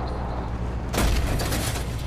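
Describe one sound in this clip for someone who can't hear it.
A heavy thud knocks as the truck hits something.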